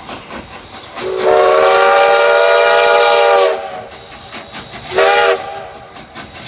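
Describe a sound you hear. A steam locomotive's whistle blows twice.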